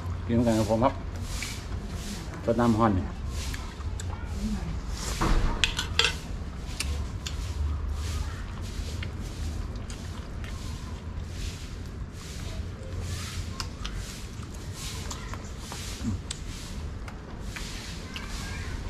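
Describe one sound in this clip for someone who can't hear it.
People chew and smack their lips loudly while eating.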